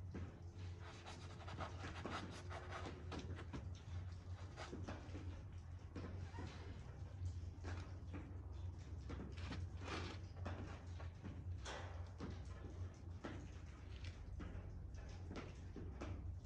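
A brush dabs and scrapes against canvas.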